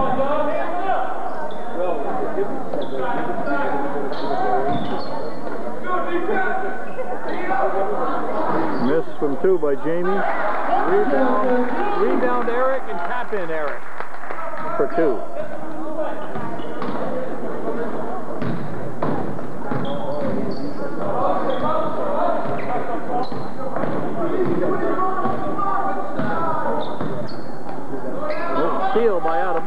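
Basketball shoes squeak sharply on the wooden floor.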